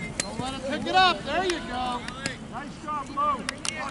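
Lacrosse sticks clack against each other.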